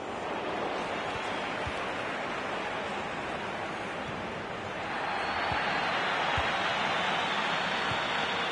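A large stadium crowd roars steadily and swells louder partway through.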